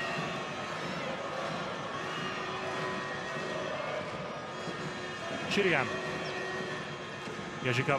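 A large crowd cheers and chants steadily in an echoing arena.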